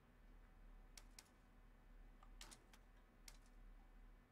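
Game menu clicks sound as options change.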